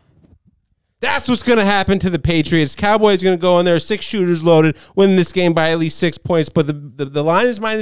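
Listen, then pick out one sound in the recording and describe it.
A man speaks loudly and with animation into a handheld microphone.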